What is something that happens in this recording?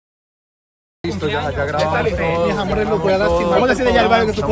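A man speaks into microphones close by.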